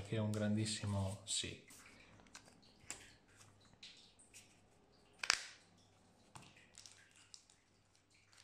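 Playing cards rustle and tap as they are shuffled and handled.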